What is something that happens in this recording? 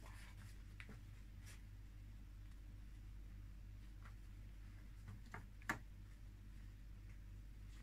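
Cotton fabric rustles softly as hands smooth and shift it.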